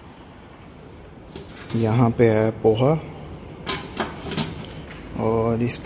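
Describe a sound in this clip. A metal lid clanks against a steel tray.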